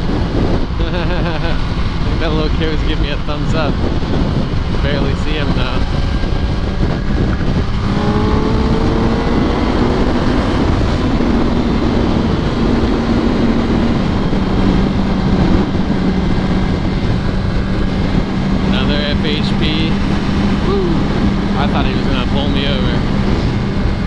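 Wind roars loudly against a motorcycle rider's helmet.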